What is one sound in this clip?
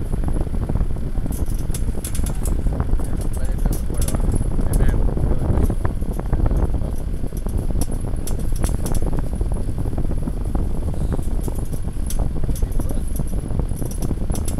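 Wind blows steadily through the trees outdoors.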